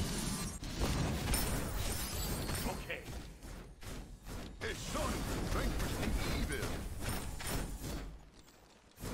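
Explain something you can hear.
Game combat sounds clash and crackle.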